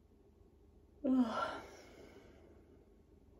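A woman lets out a loud, open-mouthed vocal sigh, close by.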